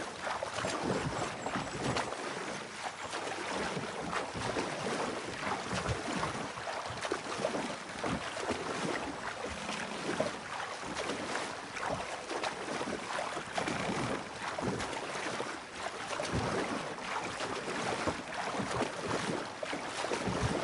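A paddle splashes and dips into water with steady strokes.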